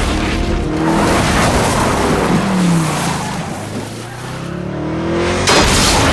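A car engine revs and roars away.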